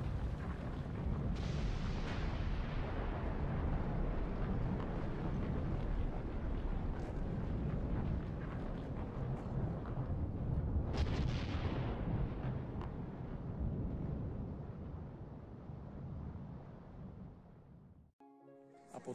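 A deep rumble booms through a large echoing hall and slowly fades.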